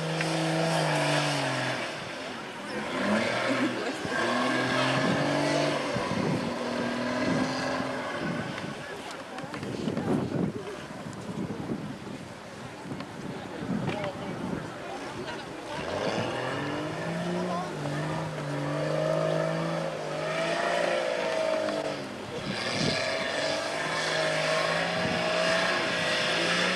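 An off-road truck engine revs hard, rising and falling in pitch.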